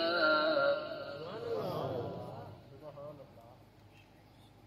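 A man chants in a melodic voice through a microphone and loudspeakers.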